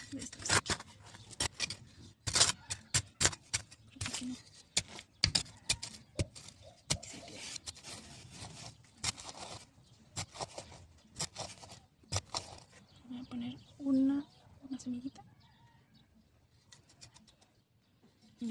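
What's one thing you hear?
Fingers scrape and scratch in dry soil close by.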